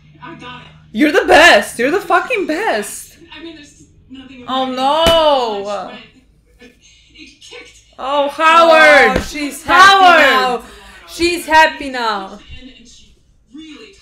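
A second young woman answers close by.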